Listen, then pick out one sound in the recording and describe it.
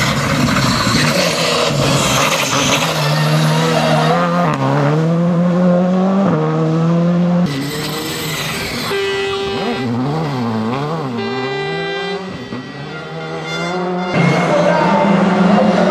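A rally car engine roars at high revs and changes gear as the car speeds past.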